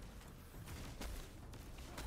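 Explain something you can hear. An energy blast bursts with a crackling whoosh.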